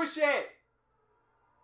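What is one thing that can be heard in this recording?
A young man exclaims loudly, close by.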